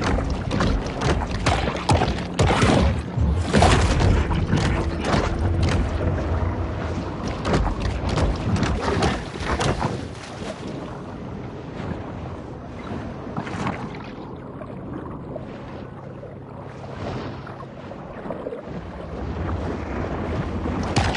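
Water rushes and gurgles underwater as a shark swims.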